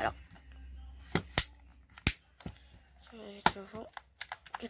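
A plastic clip clicks and snaps into place.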